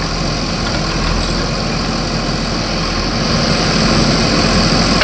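A diesel engine of a digger rumbles steadily.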